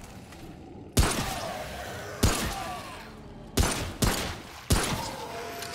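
A pistol fires single loud shots that ring out with a short echo.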